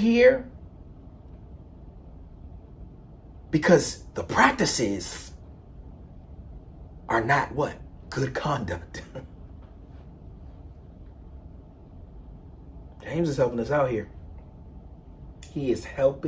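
A man speaks with animation, close to a microphone, in short bursts with pauses.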